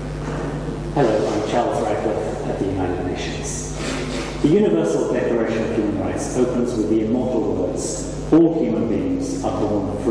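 A man speaks calmly through a loudspeaker in a room with echo.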